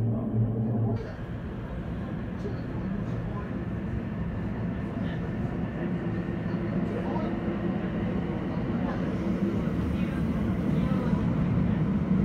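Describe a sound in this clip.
A train rumbles steadily as it pulls out and rolls through a tunnel.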